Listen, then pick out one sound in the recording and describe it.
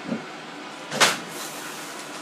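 A floor tile taps down onto a hard floor.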